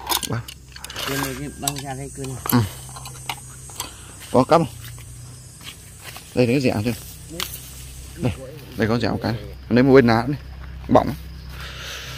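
A boy talks nearby in a calm voice.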